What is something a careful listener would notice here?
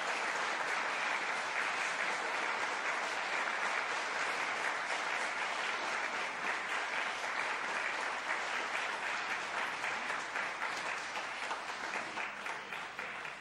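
An audience applauds steadily in a large echoing hall, slowly fading.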